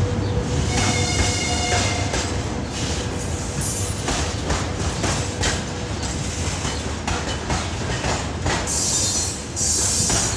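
Freight wagons rumble and clatter over the rails as they roll past.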